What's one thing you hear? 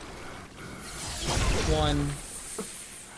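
A deep magical whoosh and rumble swells up loudly.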